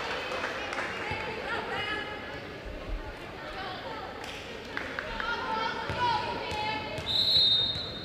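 A volleyball is struck with a dull thud.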